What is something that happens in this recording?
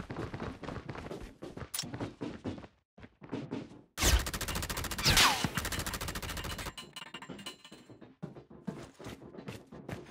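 Heavy footsteps thud quickly on a metal floor.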